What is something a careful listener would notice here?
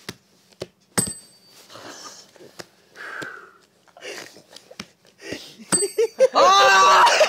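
A desk bell rings with a sharp ding.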